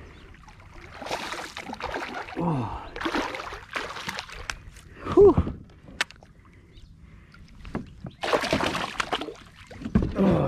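A hooked fish thrashes and splashes at the water's surface.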